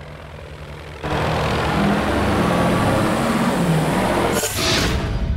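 A racing car engine roars steadily at speed.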